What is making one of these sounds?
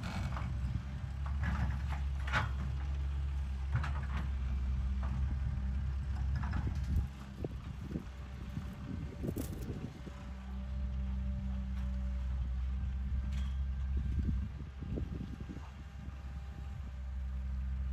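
Rocks and dirt scrape and clatter under an excavator bucket.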